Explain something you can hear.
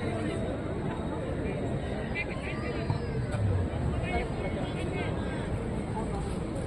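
A large crowd of spectators chatters and calls out outdoors.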